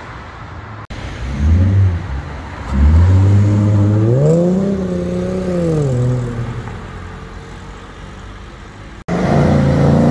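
A second muscle car revs and accelerates hard away, its engine roaring.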